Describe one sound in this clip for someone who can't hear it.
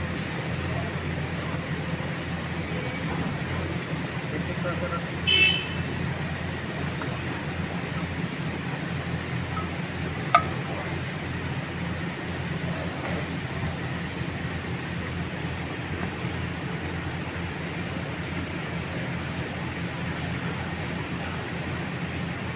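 Small metal tools click and scrape against a metal engine part.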